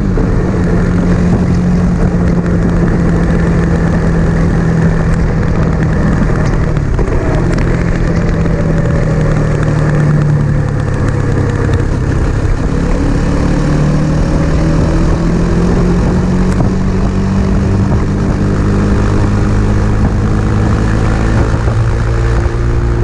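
A motorcycle engine drones steadily close by, its pitch shifting slightly with speed.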